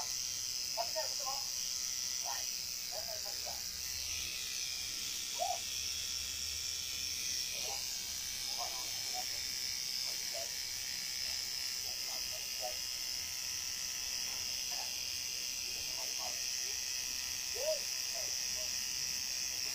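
A tattoo machine buzzes steadily.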